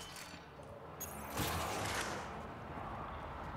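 A heavy metal door slides open with a mechanical whoosh.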